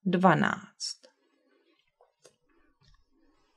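A paper card taps softly onto a wooden table.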